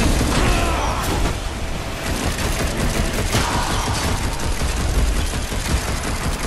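Blades slash and clang in a fast fight.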